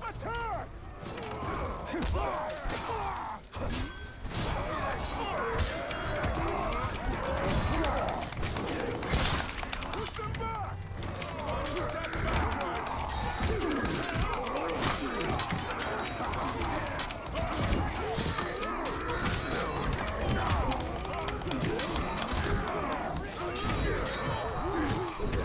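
Swords clash and strike repeatedly in a fierce melee.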